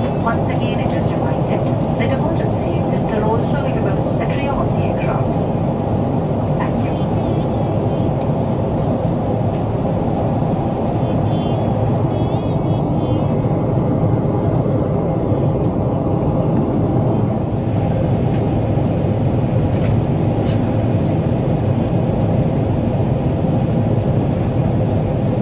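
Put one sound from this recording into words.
A jet engine roars steadily, heard from inside an aircraft cabin.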